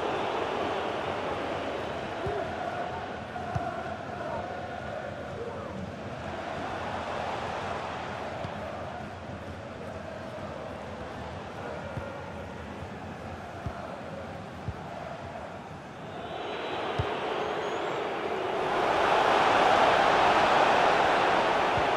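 A stadium crowd roars steadily, swelling louder near the end.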